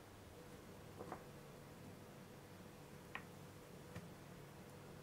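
A fork scrapes and taps against a wooden board.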